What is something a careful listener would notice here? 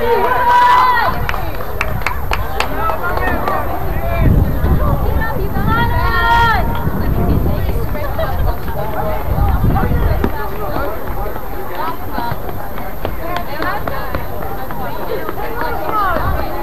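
Young men shout to each other across an open field outdoors.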